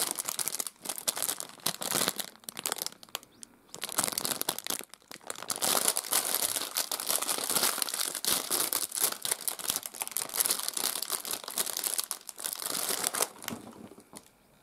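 A plastic wrapper crinkles and rustles loudly close by.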